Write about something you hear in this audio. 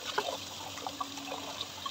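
Water runs from a tap and splashes onto fruit.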